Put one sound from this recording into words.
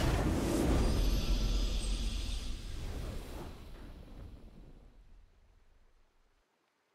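A triumphant fanfare plays and fades out.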